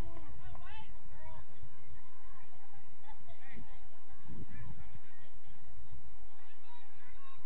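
Young women and adults shout and call out across an open field in the distance.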